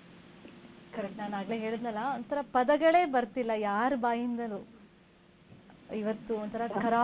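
A woman speaks with emotion over a phone line.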